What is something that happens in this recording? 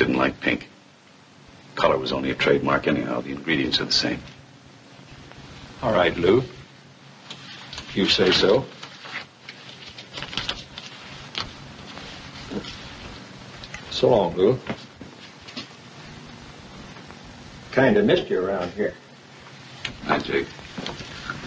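A man speaks calmly and cheerfully at close range.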